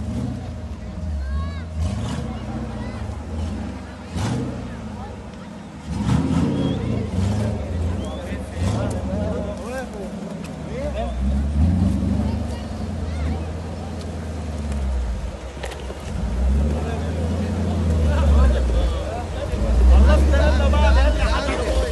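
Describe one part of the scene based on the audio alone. An off-road vehicle's engine rumbles and revs as it climbs a rough slope.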